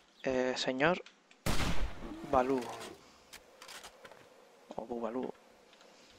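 A rifle's bolt clicks and clacks as it is reloaded.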